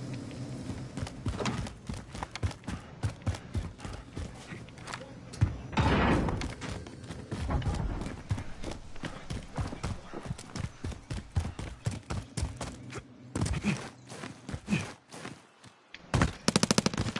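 Footsteps run quickly up concrete stairs and across hard ground.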